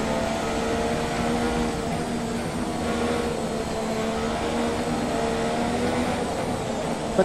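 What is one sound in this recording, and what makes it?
A racing car engine whines steadily, rising and falling in pitch as gears shift.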